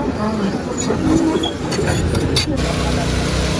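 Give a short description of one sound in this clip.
People talk in a crowd outdoors.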